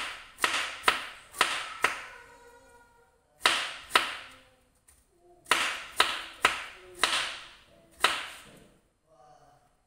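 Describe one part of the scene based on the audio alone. A knife chops through crisp vegetables on a cutting board with sharp, ringing knocks.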